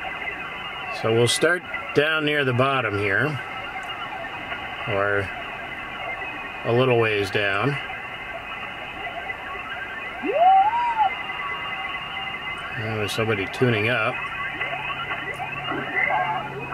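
Garbled, warbling voices and whistles come and go as a shortwave radio is tuned.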